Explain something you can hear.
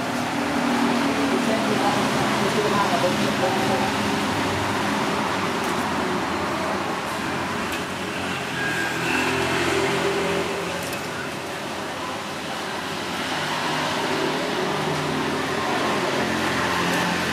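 Food sizzles on a hot charcoal grill.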